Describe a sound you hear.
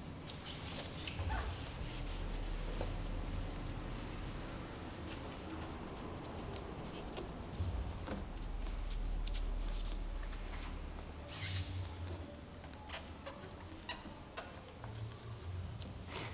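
A cloth rubs and squeaks over a car door.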